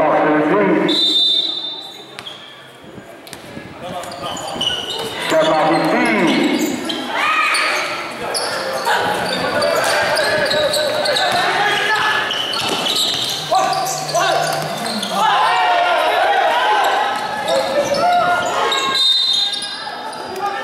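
Sneakers squeak sharply on a hard court in an echoing hall.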